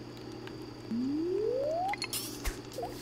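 A fishing line whirs out as a rod is cast.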